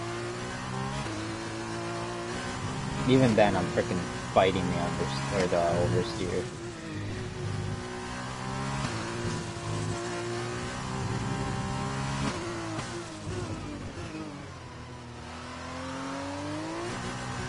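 A racing car engine whines steadily at high revs, rising and falling as it shifts gears.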